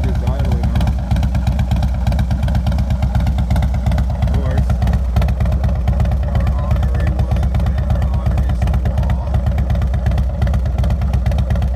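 A motorcycle engine idles close by with a deep, steady, throbbing rumble.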